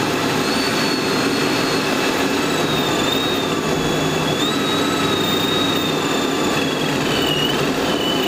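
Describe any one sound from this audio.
A supercharged V8 car cruises along a highway.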